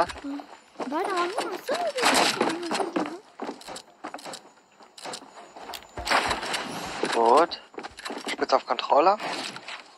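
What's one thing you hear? Building pieces snap into place with quick clattering thuds.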